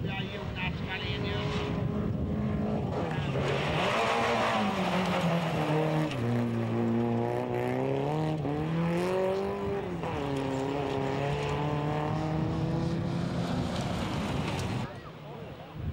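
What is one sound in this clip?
A rally car's engine revs hard, rising and falling through the gears.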